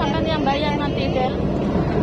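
Water sprays and splashes against the side of a boat.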